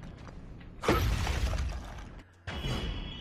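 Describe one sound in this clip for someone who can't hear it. A bright magical burst flares with a loud whoosh.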